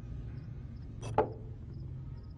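A telephone receiver is lifted with a clatter.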